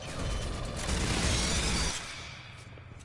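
An automatic rifle fires in a rapid burst.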